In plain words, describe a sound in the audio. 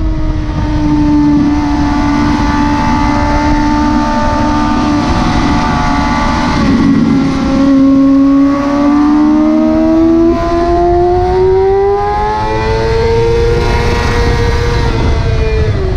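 A motorcycle engine roars loudly up close, its pitch dipping and then climbing steadily as it speeds up.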